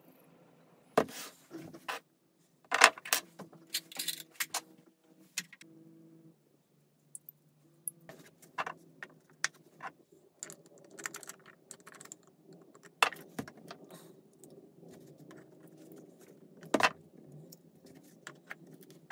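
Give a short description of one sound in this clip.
Hard plastic parts click and knock together as they are fitted.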